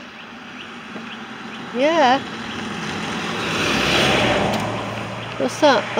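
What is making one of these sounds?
A van drives past close by, its engine growing louder and then fading.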